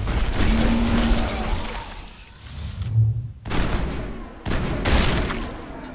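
An electric energy blast crackles.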